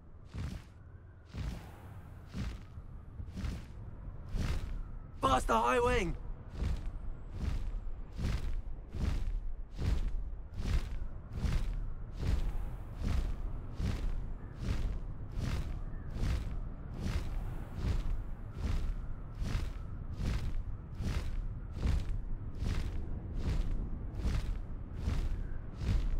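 Wind rushes past in a low, steady roar.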